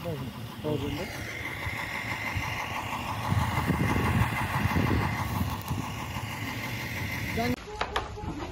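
A truck engine idles with a steady rumble.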